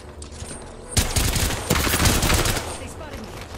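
Energy weapons fire in rapid loud bursts.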